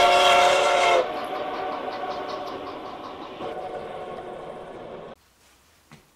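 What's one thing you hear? A steam locomotive chugs steadily and fades away.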